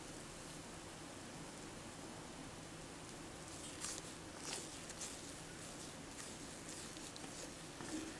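Thick batter pours softly into a small dish.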